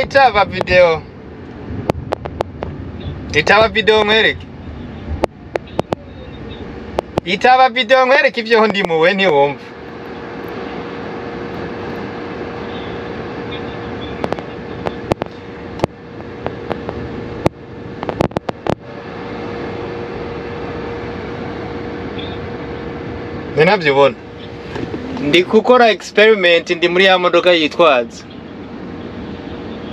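A car engine hums steadily inside the cabin.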